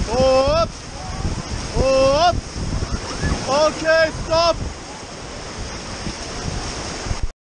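White water rushes and splashes loudly around a raft.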